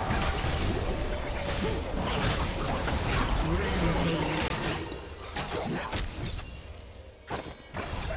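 Fantasy battle sound effects whoosh, zap and clash in a fast fight.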